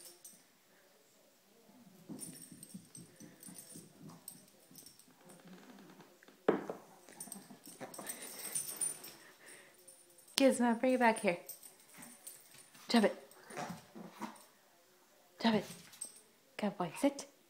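A small dog's paws patter across the floor.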